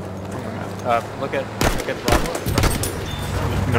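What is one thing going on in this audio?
Rifle shots ring out sharply, one after another.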